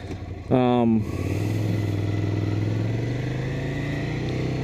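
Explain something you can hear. A motorcycle engine hums steadily as the bike rides along.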